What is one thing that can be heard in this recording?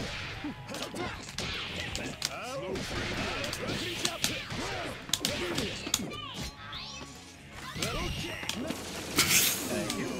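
Hits land in quick, sharp smacks and crashes.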